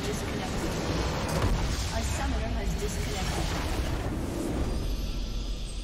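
A structure explodes with a loud burst.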